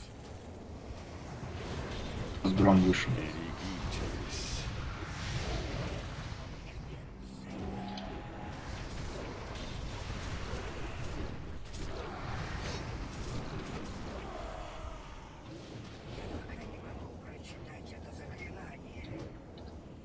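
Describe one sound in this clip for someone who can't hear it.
Magic spells whoosh and crackle in a busy fantasy battle.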